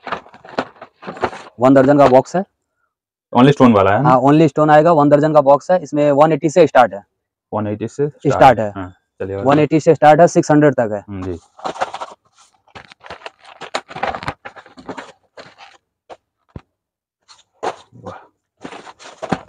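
Cardboard boxes rustle and tap as they are handled.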